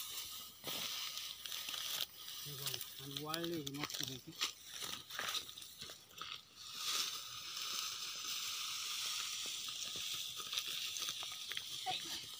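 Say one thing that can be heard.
Dry straw rustles and crunches as a man gathers it by hand.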